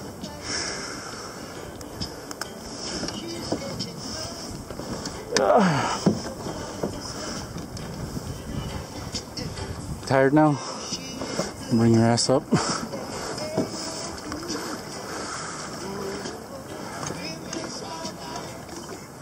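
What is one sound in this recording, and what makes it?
Waves lap against the side of a small boat.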